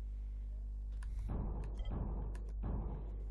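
Game menu clicks tick softly.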